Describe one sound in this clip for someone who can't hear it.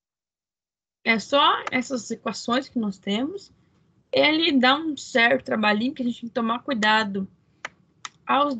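A woman speaks calmly and explains, heard through an online call.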